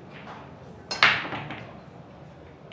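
A cue ball smashes into a rack of billiard balls with a loud crack, and the balls clatter apart.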